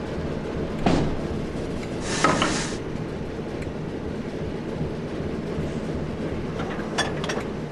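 A diesel locomotive engine idles with a low, steady rumble.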